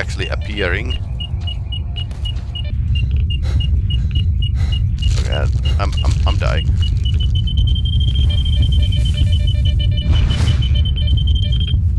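An electronic detector beeps steadily, the beeps speeding up into a continuous tone.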